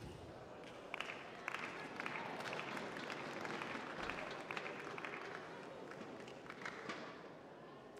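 A crowd cheers and applauds after a rally.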